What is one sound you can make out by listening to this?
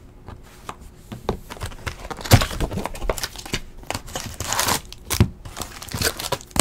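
Plastic wrapping crinkles and rustles as a card pack is torn open.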